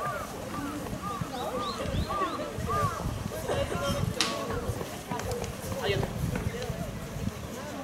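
A group of young women shout and cheer together outdoors.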